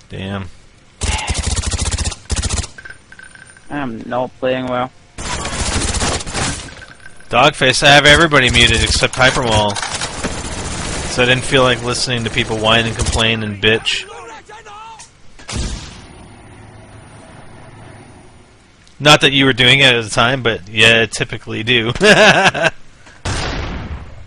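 Video game gunfire rattles in quick bursts.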